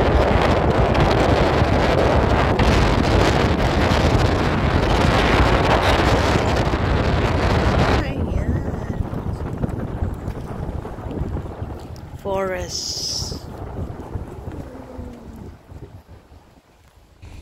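Tyres hum on a paved road as a car drives along.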